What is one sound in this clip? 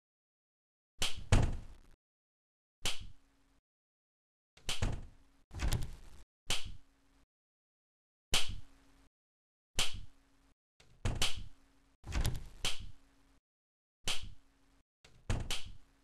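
Doors slam shut again and again with a sharp bang.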